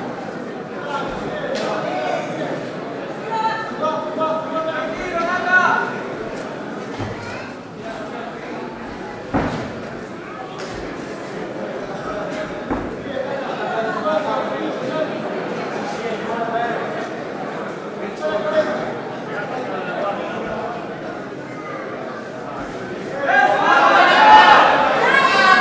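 Bodies thud and scuff on a padded mat.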